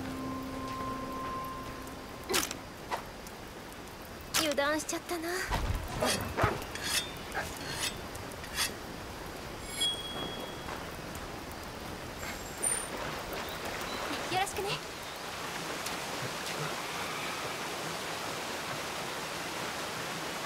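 A river rushes and splashes steadily.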